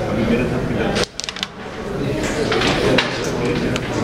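A striker clacks sharply against game pieces on a wooden board.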